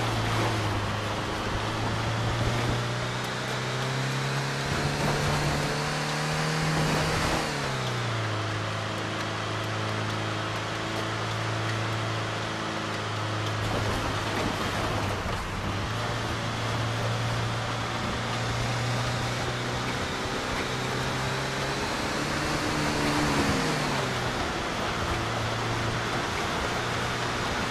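A car engine hums steadily and shifts pitch as it changes gear.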